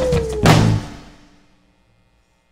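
A rock band plays a final chord with a loud cymbal crash that rings out and fades.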